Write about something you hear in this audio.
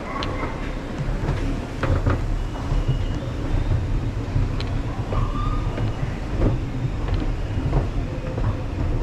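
An escalator rumbles and hums steadily.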